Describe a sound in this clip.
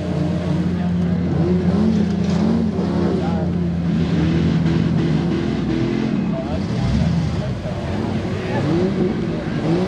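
Men shout and cheer nearby outdoors.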